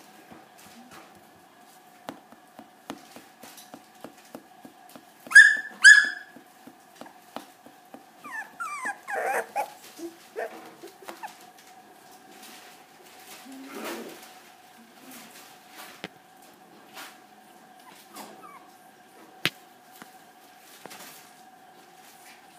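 A puppy's paws scratch against a woven basket.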